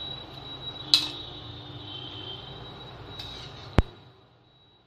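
A metal ladle clinks against a pan.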